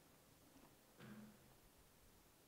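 A man speaks briefly and faintly in a large echoing hall.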